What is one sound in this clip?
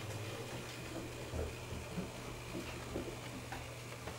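Model train wheels click over track joints.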